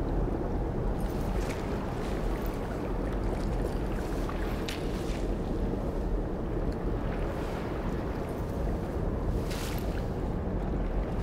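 Water splashes as a figure pushes up out of shallow water.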